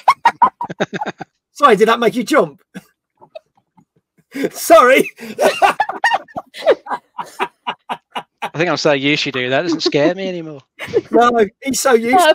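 A woman laughs heartily through a microphone.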